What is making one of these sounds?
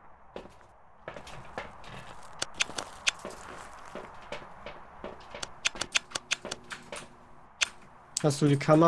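Footsteps clatter on a metal floor.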